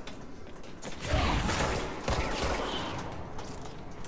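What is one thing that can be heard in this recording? A pistol fires several quick shots.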